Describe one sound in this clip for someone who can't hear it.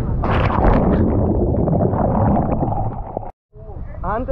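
Waves churn and splash.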